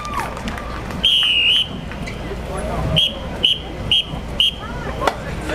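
A whistle blows in short sharp blasts.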